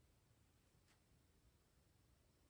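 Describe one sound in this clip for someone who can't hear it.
A brush brushes softly across paper.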